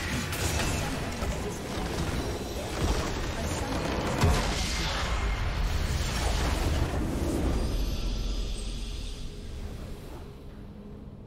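Video game spells crackle and explode in a loud battle.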